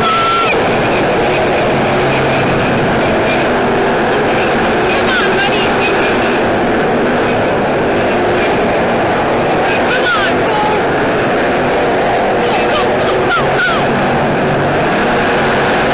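Many race car engines roar loudly and steadily.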